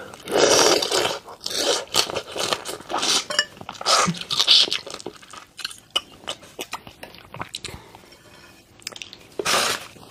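A young woman chews wetly up close.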